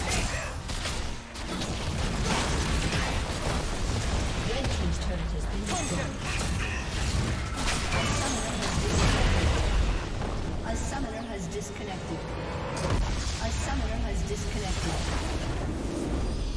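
Fighting sounds and magic blasts clash rapidly in a game battle.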